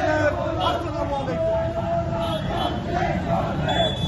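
A man shouts slogans outdoors.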